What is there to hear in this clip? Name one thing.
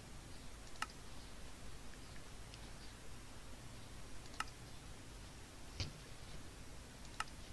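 A game menu button clicks sharply now and then.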